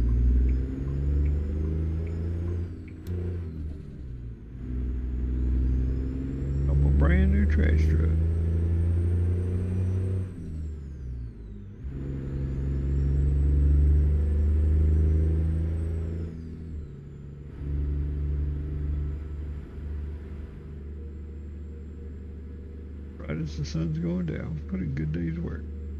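A heavy truck engine drones low, rising and dropping in pitch as it shifts gears.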